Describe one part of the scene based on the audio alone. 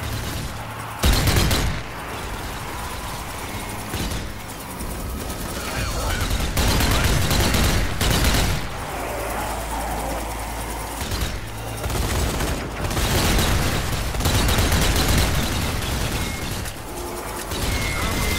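Gunshots fire in loud bursts.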